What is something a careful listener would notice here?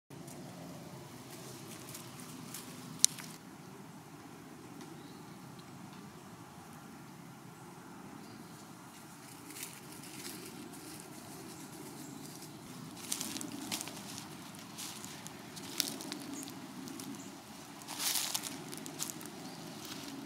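A cat's paws crunch on dry leaves and pine needles.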